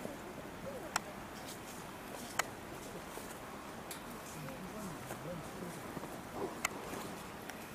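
Twigs snap sharply now and then in the bushes.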